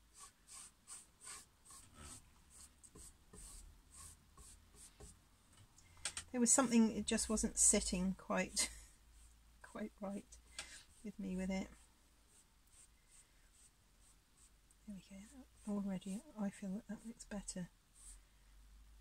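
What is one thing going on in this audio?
A paintbrush dabs and scrapes lightly on a canvas.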